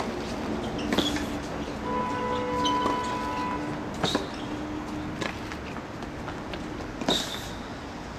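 A tennis ball is struck with a racket, with sharp pops.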